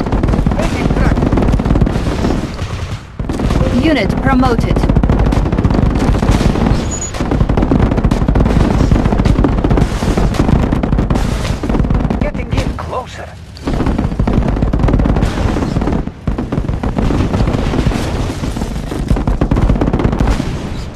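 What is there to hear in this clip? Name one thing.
Anti-aircraft flak shells burst in dull booms.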